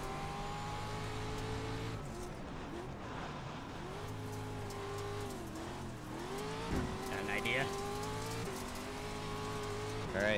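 A race car engine roars and revs up and down through gear changes.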